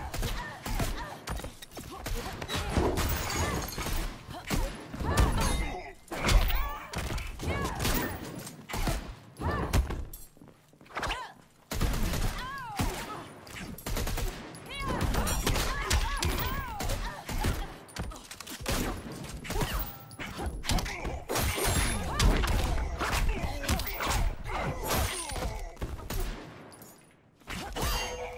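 Punches and kicks land with heavy thuds and smacks in quick bursts.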